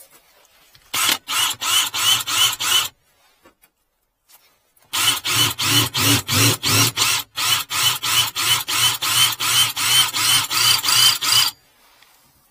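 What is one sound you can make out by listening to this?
A cordless drill whirs and hammers in rapid bursts into metal.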